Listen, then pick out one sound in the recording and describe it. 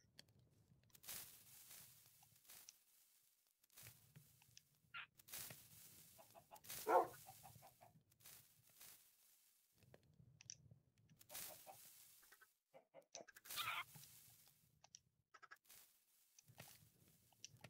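Short game clicks and pops sound as items are picked.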